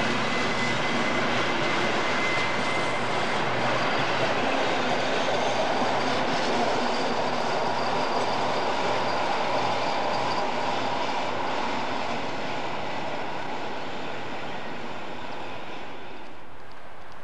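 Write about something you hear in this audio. A passenger train rolls past close by, its wheels rumbling and clattering on the rails.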